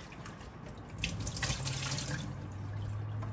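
Water splashes from a running tap.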